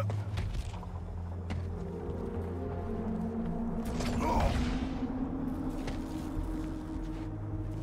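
Heavy armoured footsteps clank on a hard floor.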